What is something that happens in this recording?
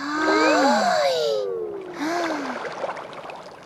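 A cartoon character cries out in a high, squeaky, wobbling voice.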